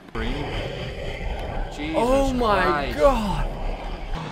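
A young man gasps and exclaims loudly through a microphone.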